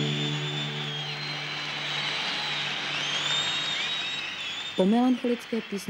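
A large crowd cheers and whistles in a big echoing hall.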